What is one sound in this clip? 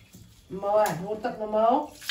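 Water pours and splashes onto a tiled floor.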